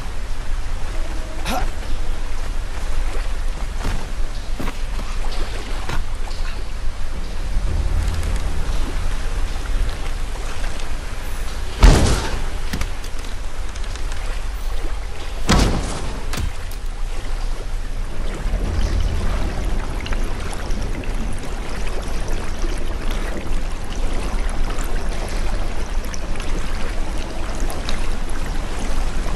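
A low, muffled underwater rumble goes on steadily.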